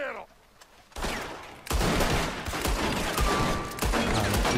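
Rifles and revolvers fire in a rapid volley.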